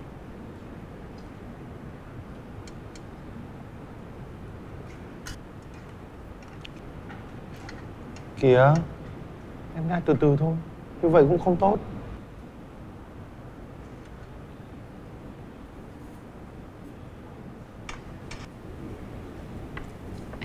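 Chopsticks click lightly against metal trays.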